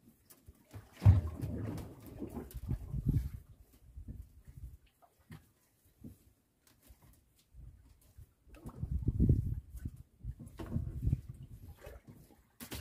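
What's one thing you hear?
Wind gusts buffet outdoors on open water.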